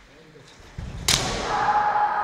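A bamboo sword strikes a helmet with a sharp crack.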